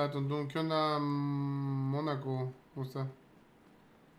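A young man speaks close to a microphone, drawing out his words with animation.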